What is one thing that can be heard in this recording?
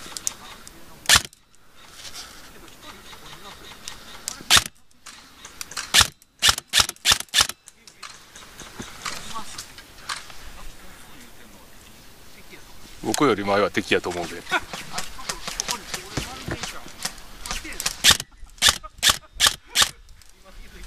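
An air rifle fires sharp, snapping shots in quick bursts close by.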